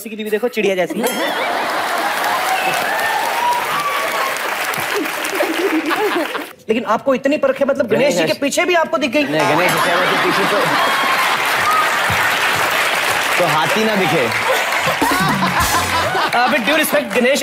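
An audience laughs and claps.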